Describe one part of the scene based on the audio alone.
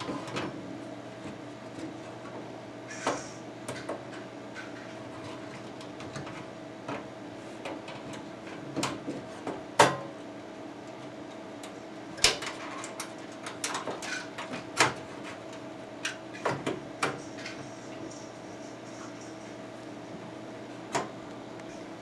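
Metal parts click and clatter as a drive slides into a computer case.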